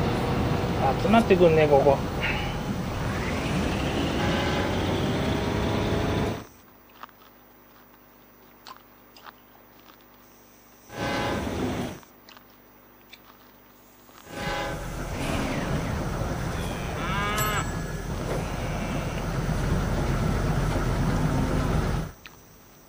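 A train rumbles and clatters along the tracks.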